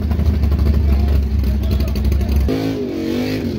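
A drag-race muscle car idles with a lumpy rumble.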